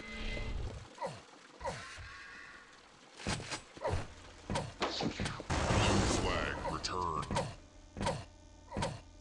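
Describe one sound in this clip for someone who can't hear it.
Weapons fire in short, sharp bursts.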